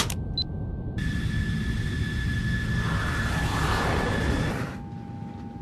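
A jet plane roars steadily as it flies past.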